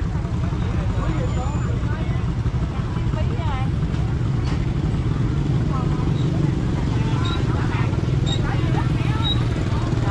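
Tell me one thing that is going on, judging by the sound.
A motorbike engine idles and putters nearby.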